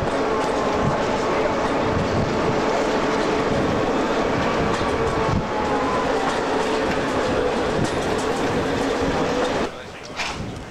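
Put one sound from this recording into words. A train rumbles and clatters loudly along the track.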